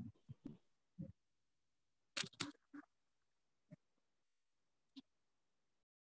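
A man speaks briefly in short bursts over an online call.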